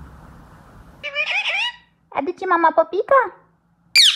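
A parrot chatters in a scratchy, talking voice up close.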